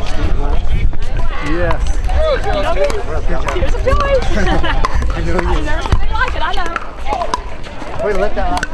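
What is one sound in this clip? Paddles pop sharply against a plastic ball.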